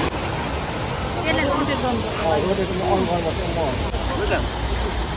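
Women chat nearby.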